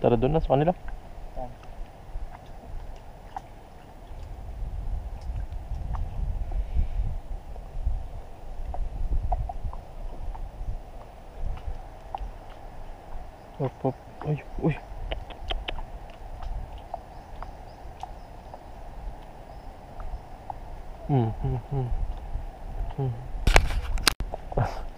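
Wind rumbles and buffets outdoors over open water.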